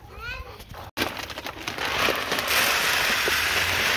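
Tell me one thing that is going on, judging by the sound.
Seed pours and rattles into a plastic bucket.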